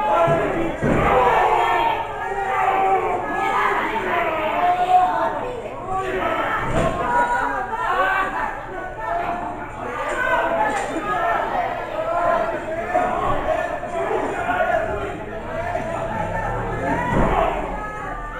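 Wrestlers slam heavily onto a ring mat with loud thuds.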